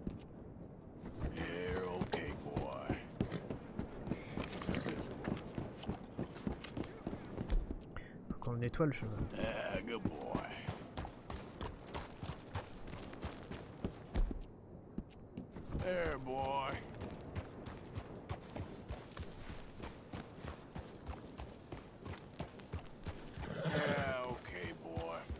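Horse hooves clop steadily on the ground.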